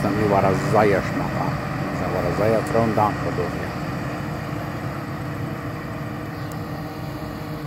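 A heavy tractor engine rumbles steadily as it approaches.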